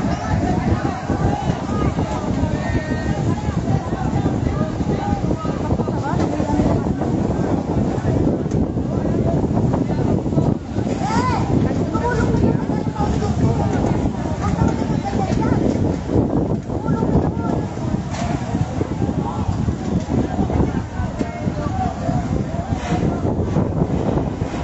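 A large fire roars steadily nearby.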